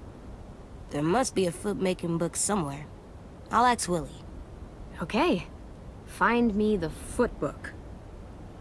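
A teenage girl answers gently and warmly.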